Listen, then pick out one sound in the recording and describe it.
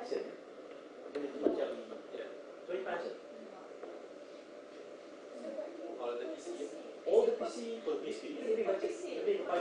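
A man speaks to a small audience in a room with some echo.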